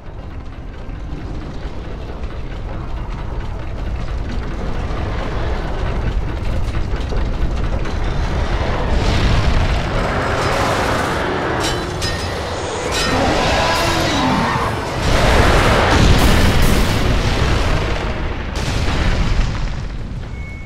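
A heavy lift platform rumbles steadily as it moves through a shaft.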